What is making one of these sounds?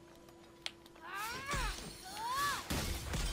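A crystal shatters with bright, rising chimes.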